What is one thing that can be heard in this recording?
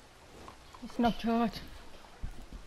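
A horse whinnies briefly.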